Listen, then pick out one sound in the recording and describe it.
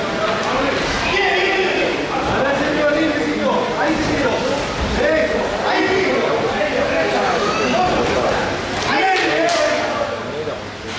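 A crowd of men shouts and cheers in an echoing hall.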